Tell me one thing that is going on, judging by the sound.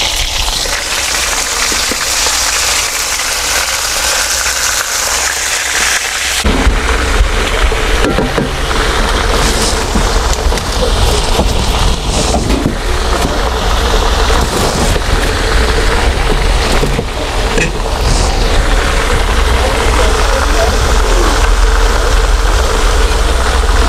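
Hot oil sizzles and crackles in a pan.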